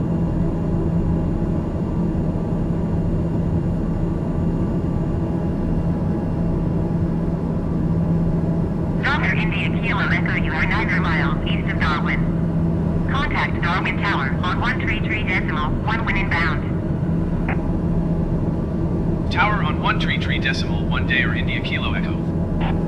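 Jet engines hum in a steady low drone.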